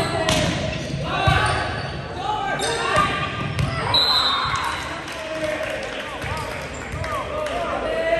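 Young players call out to each other loudly across the court.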